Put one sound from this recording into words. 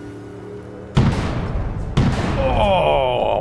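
A gun fires shots.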